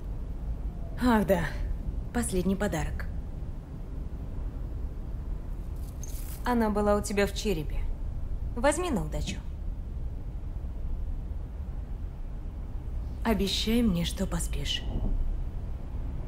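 A young woman speaks softly and close by, in short phrases.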